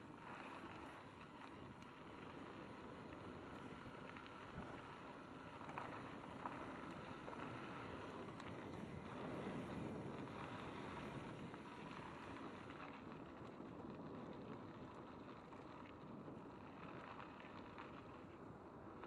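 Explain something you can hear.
Wind rushes past in a steady roar.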